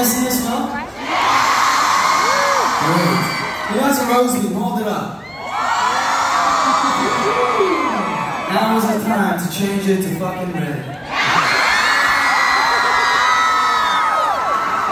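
A crowd cheers and screams.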